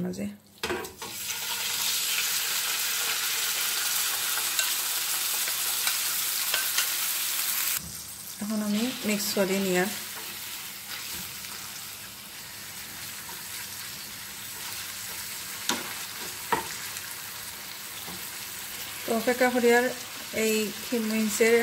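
Minced meat sizzles loudly in hot oil in a frying pan.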